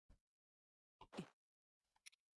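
A short electronic menu blip sounds.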